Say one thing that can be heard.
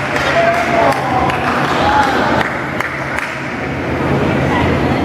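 Men talk and call out in a large echoing gym.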